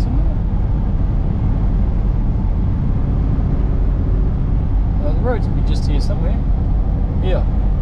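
Tyres roar on a paved road.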